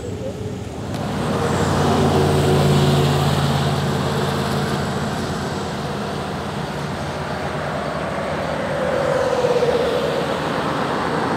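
Floodwater roars over a dam.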